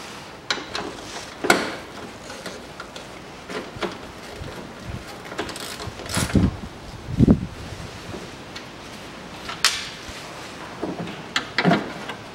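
Plastic and metal parts of a car engine click and knock as gloved hands work on them.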